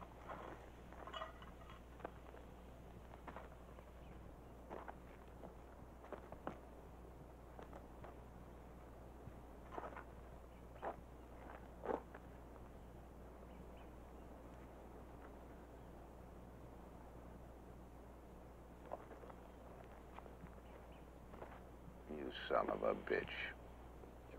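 A man speaks slowly and quietly, with long pauses.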